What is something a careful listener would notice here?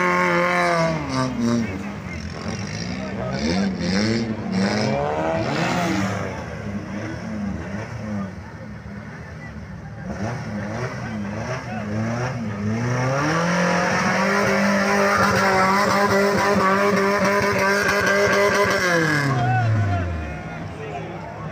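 An off-road engine roars and revs hard, rising and falling in pitch.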